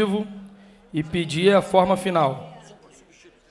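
A man speaks loudly into a microphone in an echoing hall.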